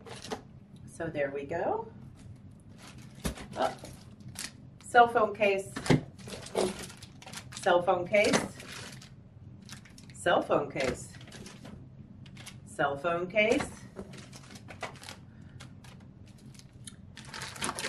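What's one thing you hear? Plastic packaging crinkles and rustles as it is handled.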